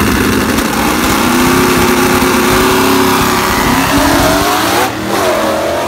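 Two race car engines roar loudly at the start line.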